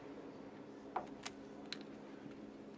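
Snooker balls knock together with short clicks.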